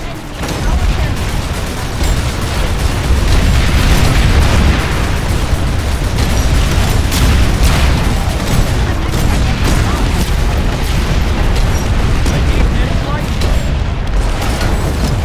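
A large engine rumbles deeply and steadily.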